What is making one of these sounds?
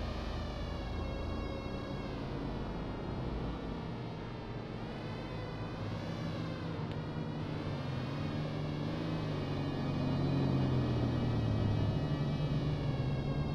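A small electric motor whines steadily, its pitch rising and falling.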